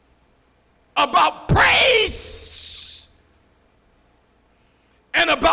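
A man preaches forcefully into a microphone in a large echoing hall.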